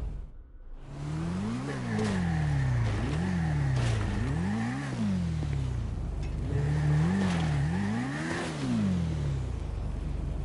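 A motorcycle engine revs up and down again and again.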